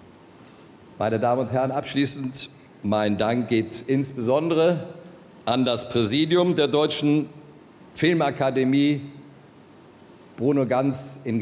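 An elderly man speaks calmly into a microphone over loudspeakers.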